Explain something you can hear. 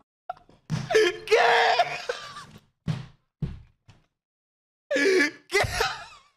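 A young man shouts and laughs loudly into a microphone.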